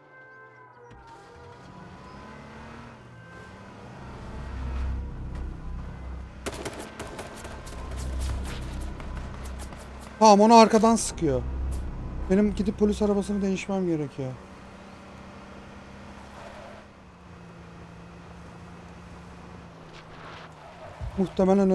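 A car engine hums and revs as a car drives over rough ground.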